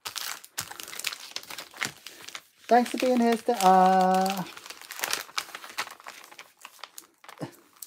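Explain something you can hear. A padded paper envelope rustles and crackles as it is folded.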